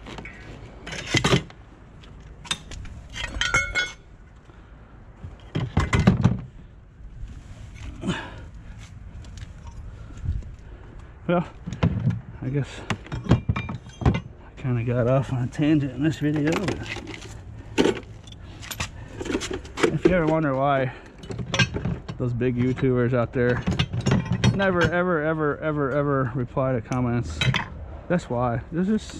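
Metal bicycle parts clank and rattle as they are picked up and set down.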